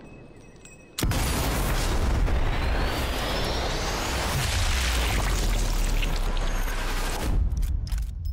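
A bullet whooshes through the air in a long, slowed rush.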